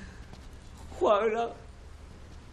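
An elderly man cries out in a wailing voice.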